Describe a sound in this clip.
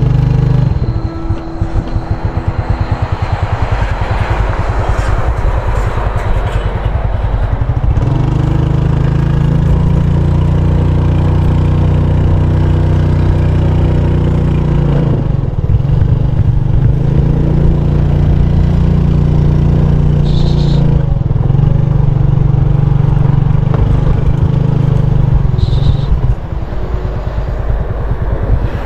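A small motorbike engine hums and revs as it rides along a bumpy dirt track.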